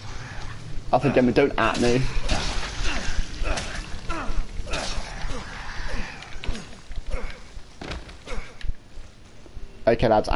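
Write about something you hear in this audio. A knife slashes wetly into flesh.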